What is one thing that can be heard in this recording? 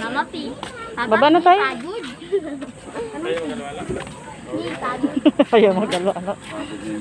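A child talks in a high voice nearby.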